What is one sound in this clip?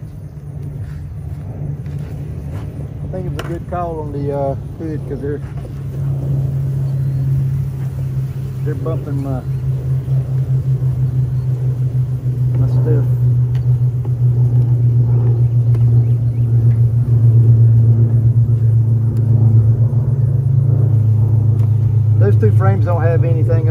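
Bees buzz steadily in a low drone, growing louder.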